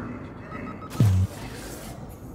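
A heavy metal lever clanks as it is pulled.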